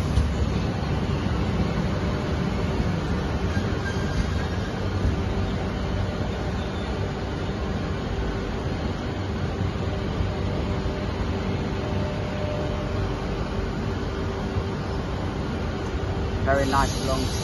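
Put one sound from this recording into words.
A train rumbles and whooshes steadily past close by.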